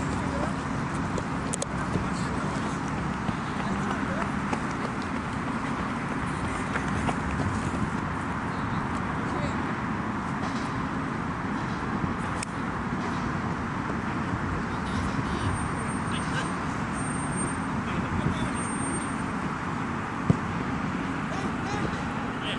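Outdoors, a steady wind rumbles.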